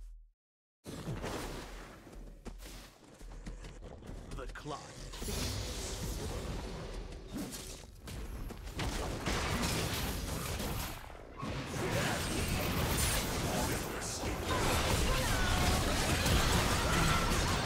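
Video game spell effects and fighting sounds clash and burst.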